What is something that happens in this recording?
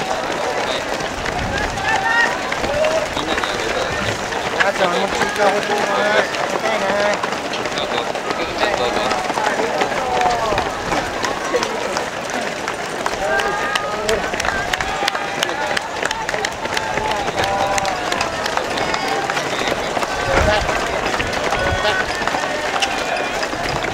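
A crowd of spectators cheers and calls out close by, outdoors.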